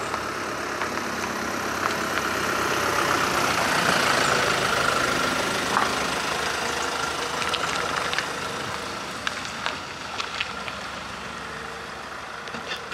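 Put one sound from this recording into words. A van's engine hums as it drives slowly past and away.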